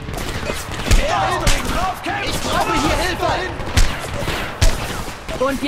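A rifle fires single loud shots.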